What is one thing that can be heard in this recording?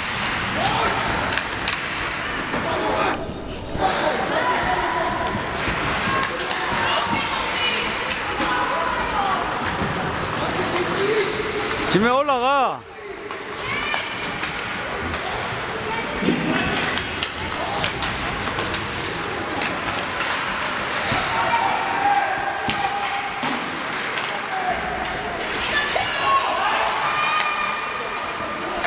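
A crowd of spectators chatters and calls out in a large echoing rink.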